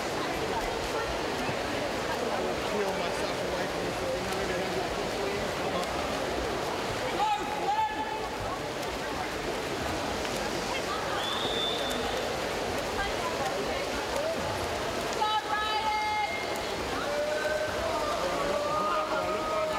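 Swimmers splash and churn the water.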